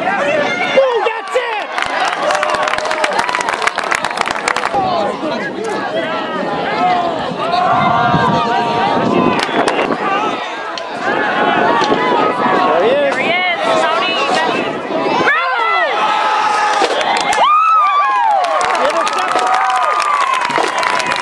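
A crowd of spectators and players shouts and cheers outdoors.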